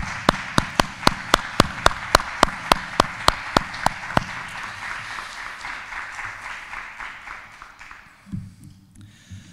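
An audience applauds in a large hall and gradually fades.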